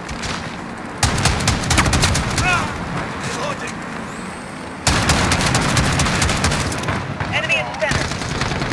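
A mounted machine gun fires in rapid bursts.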